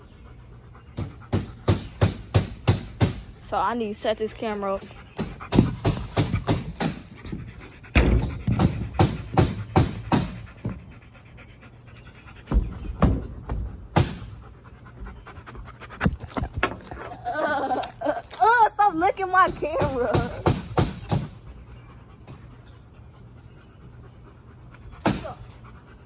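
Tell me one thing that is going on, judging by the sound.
Close thumps and knocks rattle repeatedly.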